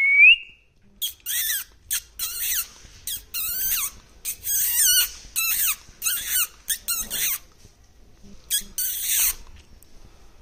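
A parrot screeches in loud, harsh bursts.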